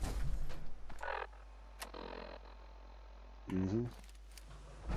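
Electronic menu sounds beep and click.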